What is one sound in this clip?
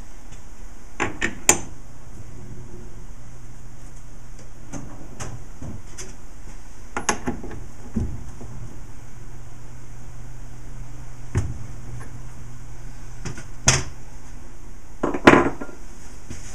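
Metal parts clank and click as a hand adjusts a lathe's tool holder.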